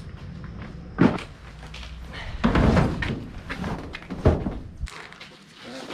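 Cardboard boxes thump and scrape as they are moved.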